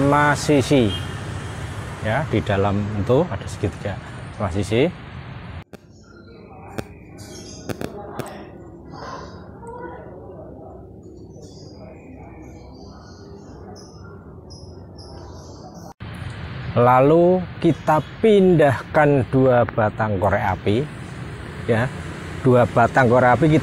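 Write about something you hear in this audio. An elderly man talks with animation close to a microphone outdoors.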